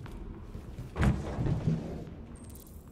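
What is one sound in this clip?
A heavy plastic crate lid clunks open.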